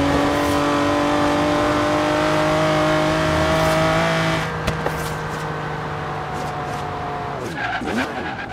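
A sports car engine roars at high speed, then drops in pitch as the car slows.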